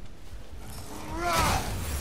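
An axe swings and strikes with a loud whoosh.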